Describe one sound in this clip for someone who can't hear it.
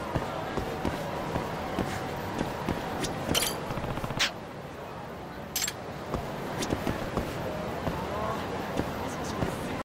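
Footsteps tap on pavement at a steady walking pace.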